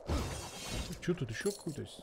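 A sword swishes through the air with a magical whoosh.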